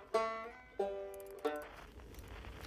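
Banjo notes are plucked.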